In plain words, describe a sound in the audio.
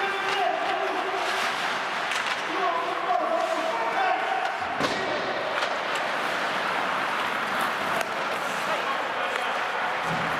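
Ice skates scrape and hiss across the ice in a large echoing hall.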